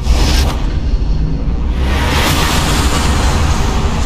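Tyres screech as a race car skids and spins.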